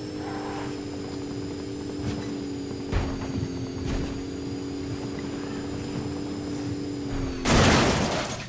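A buggy engine drones steadily.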